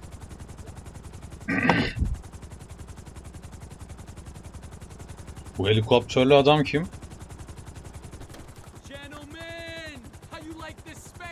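A helicopter's rotor thumps steadily and rapidly.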